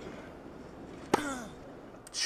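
A racket strikes a tennis ball with a sharp pop.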